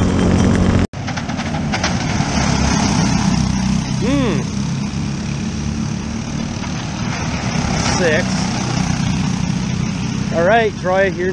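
Go-kart engines buzz from a distance as the karts pass on a track outdoors.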